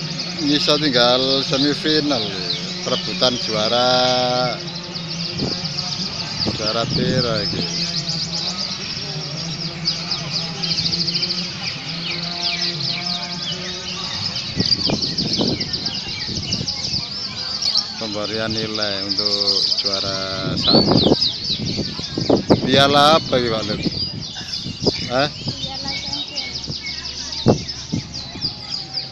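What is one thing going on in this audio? Caged songbirds chirp and trill rapidly and loudly.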